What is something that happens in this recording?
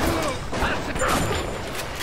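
A shotgun fires loudly in a game.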